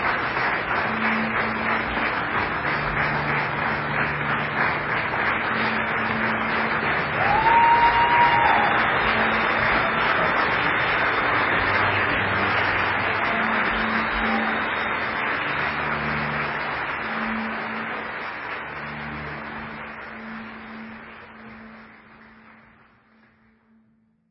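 A cello plays slow, low notes in an echoing hall.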